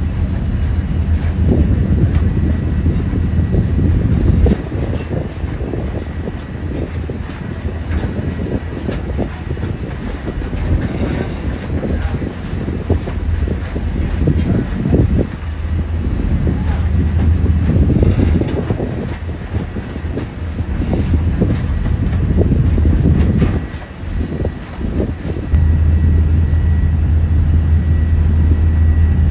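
Wind gusts and buffets outdoors on open water.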